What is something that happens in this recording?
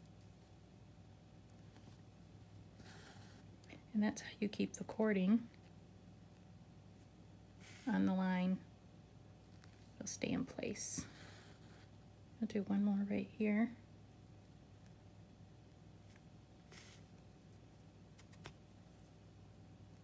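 Thread pulls softly through felt as a needle stitches.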